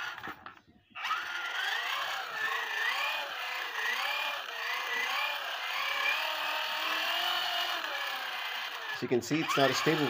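A small electric motor whirs steadily through a gearbox.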